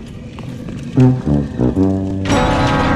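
A heavy metal lever clanks as it is pulled.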